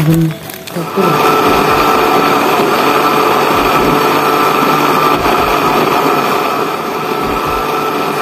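A blender motor whirs loudly and steadily.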